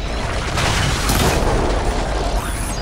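Arrows strike a metal machine with sparks and crackles.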